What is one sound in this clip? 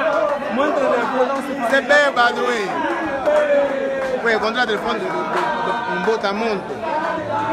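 A crowd of men sings and chants loudly together close by.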